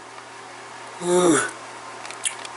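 A man yawns loudly, close by.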